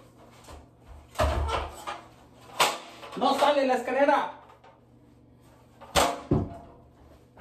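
A metal ladder clanks and rattles nearby.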